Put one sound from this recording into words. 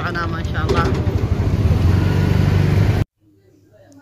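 A motor rickshaw engine rumbles steadily.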